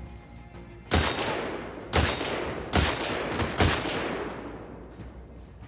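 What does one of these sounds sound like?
Rifle shots ring out one after another, each echoing away.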